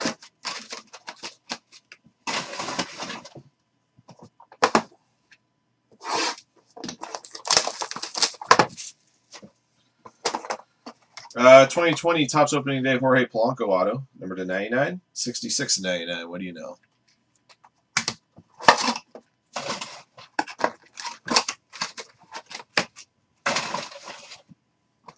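Cardboard packs rustle and slide under hands.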